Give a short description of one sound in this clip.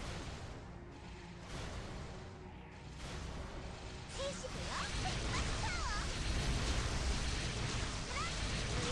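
Game battle effects whoosh and rumble with booming blasts.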